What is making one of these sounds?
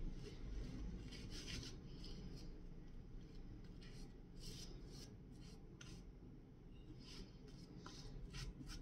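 A shaving brush swishes against stubble on skin.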